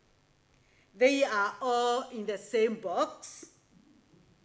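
A woman sings a short phrase into a microphone.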